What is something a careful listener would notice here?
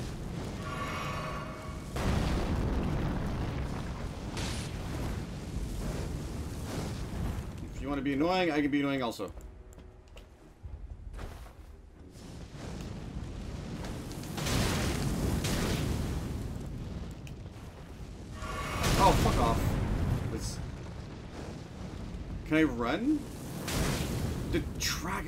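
Swords swing and clash in a fight.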